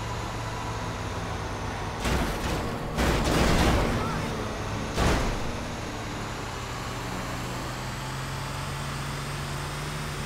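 A heavy truck engine rumbles steadily as it drives along a road.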